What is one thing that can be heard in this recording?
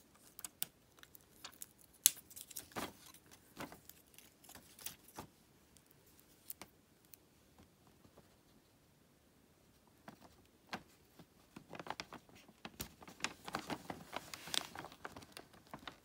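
Wooden craft sticks click and tap against each other on a table.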